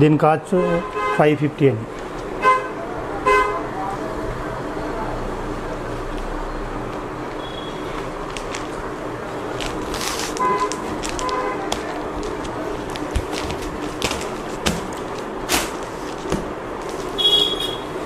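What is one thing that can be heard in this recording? Cloth rustles as it is unfolded and spread out.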